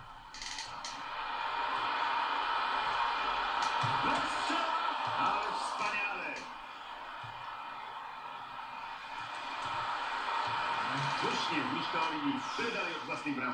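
Crowd noise from a football video game roars through television speakers.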